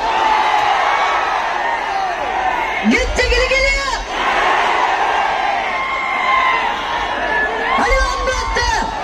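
A large crowd cheers and screams loudly outdoors.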